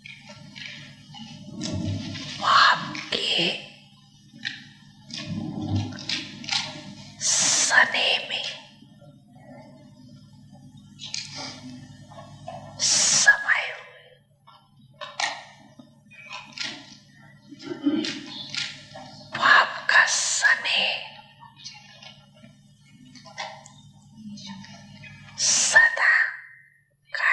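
A young man speaks into a microphone, heard through loudspeakers in an echoing hall.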